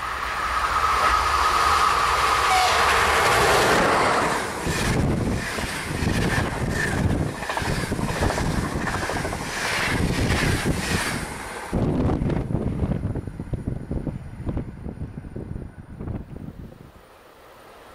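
An electric train rushes past close by with a loud rumble and clatter of wheels on the rails.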